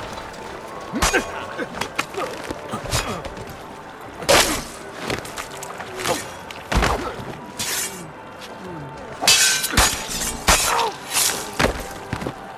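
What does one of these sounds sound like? Blades clash and strike in a sword fight.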